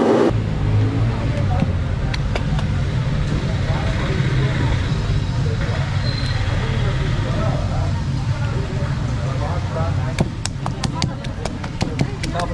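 Hands pat soft dough on a leaf.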